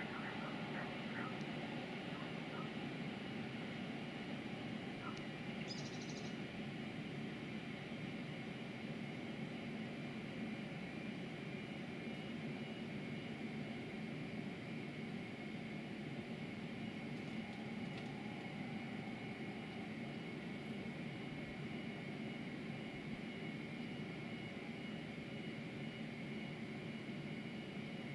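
A train rumbles steadily along the tracks nearby.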